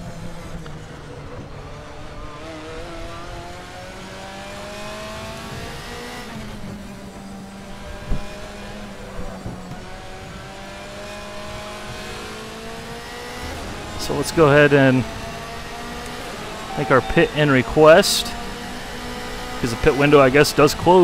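A racing car engine revs steadily higher, dropping in pitch at each gear change.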